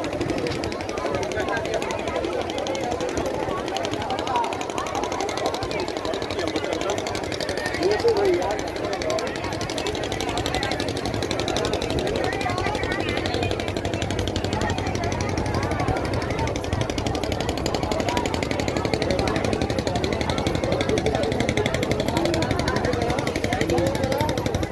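A large crowd chatters and calls out all around, outdoors.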